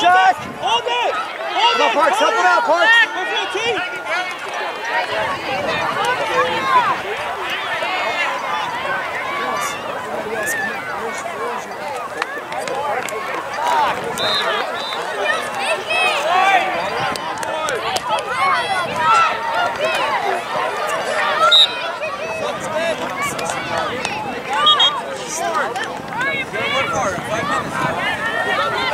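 A crowd of spectators cheers and shouts from the sidelines, outdoors.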